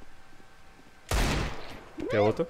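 A pistol shot cracks.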